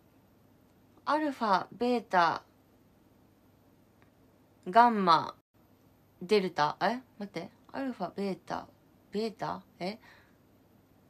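A young woman talks calmly and closely into a microphone, in short bursts with pauses.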